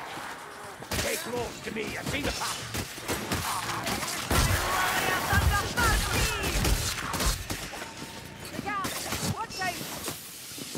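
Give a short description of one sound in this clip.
Rat-like creatures screech and squeal.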